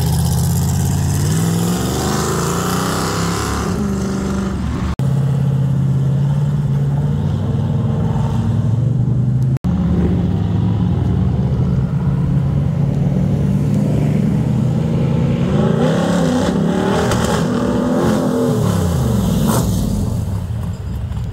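A powerful car engine rumbles loudly and revs up and down as cars drive past.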